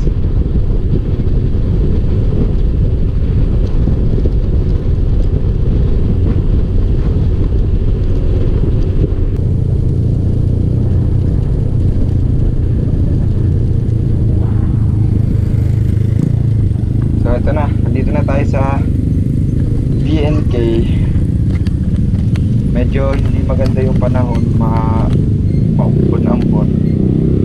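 Wind roars steadily against a moving motorcycle.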